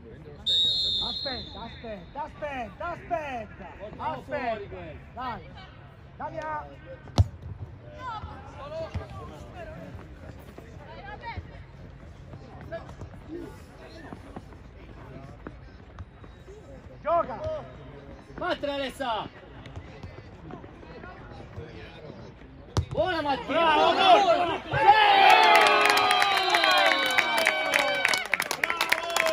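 Young boys shout and call out across an open field.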